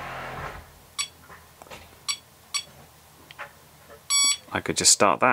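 A small electronic device gives short, high beeps.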